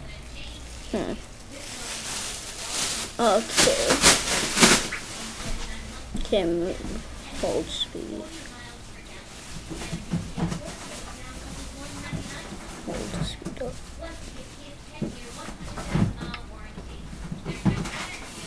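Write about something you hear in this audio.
A boy speaks close to a laptop microphone.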